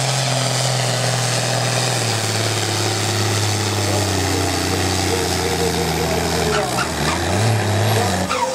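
A tractor engine roars loudly at full power, its pitch shifting as it strains.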